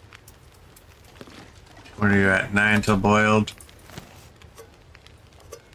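A fire crackles softly in a stove.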